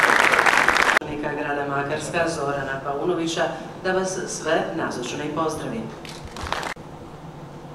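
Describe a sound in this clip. A man speaks calmly through a loudspeaker in a large hall.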